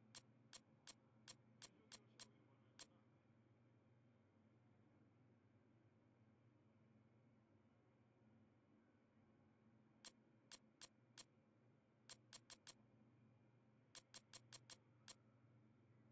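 Short sharp menu clicks tick in quick bursts.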